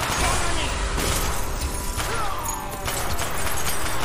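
Glass shatters and tinkles.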